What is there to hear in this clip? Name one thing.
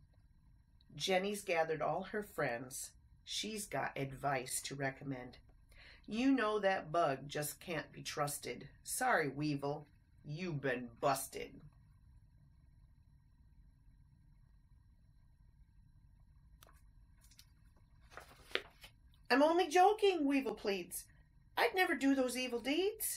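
A woman reads a story aloud close by, with lively expression.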